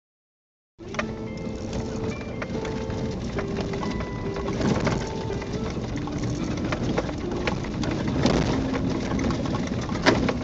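A vehicle engine hums low and steadily.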